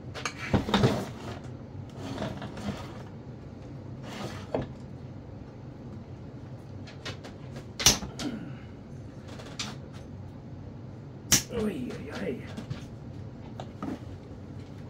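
Metal parts clink and knock on a hard surface.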